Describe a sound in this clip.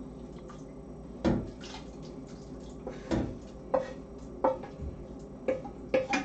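A spoon clinks and scrapes against a frying pan.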